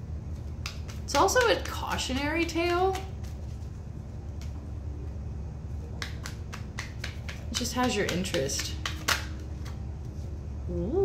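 Playing cards riffle and slap.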